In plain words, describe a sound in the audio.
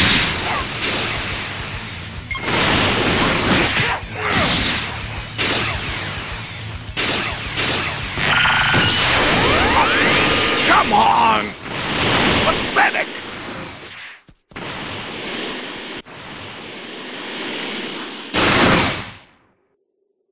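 Energy blasts whoosh and burst in a fighting game.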